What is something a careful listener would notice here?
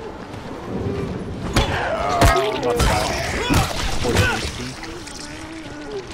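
A zombie growls and groans.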